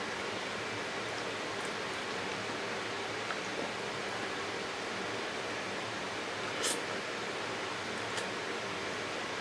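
Chopsticks click softly against a box.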